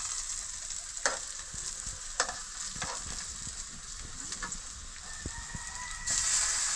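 Food sizzles in a pan of hot oil.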